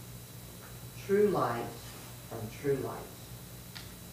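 A man speaks calmly in a small echoing room.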